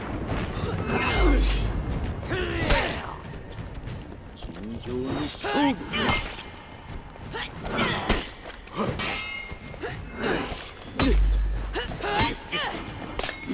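Steel blades clash and strike in a fight.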